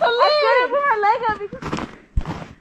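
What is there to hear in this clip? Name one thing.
A child squeals excitedly close by.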